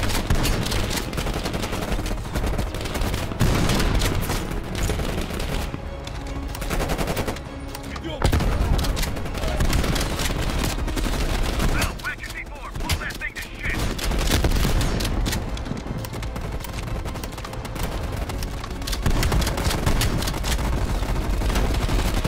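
Gunshots fire in rapid bursts close by.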